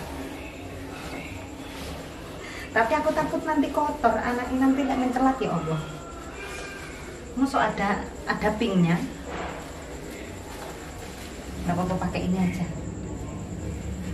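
Cloth rustles as a girl handles fabric.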